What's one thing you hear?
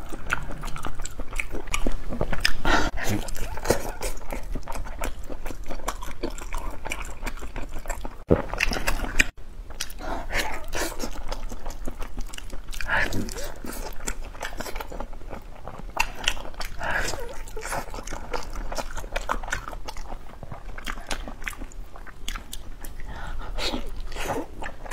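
Soft meat tears and squelches between fingers close up.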